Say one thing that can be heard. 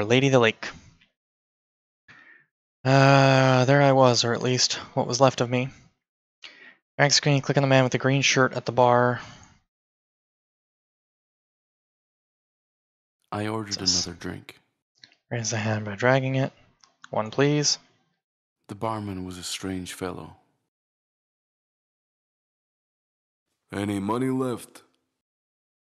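A man speaks with animation into a close microphone, reading out lines.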